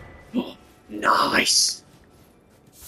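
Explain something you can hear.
An item pickup chimes brightly.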